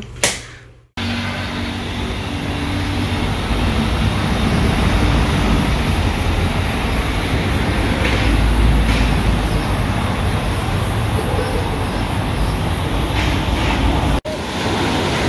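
City traffic rumbles past outdoors.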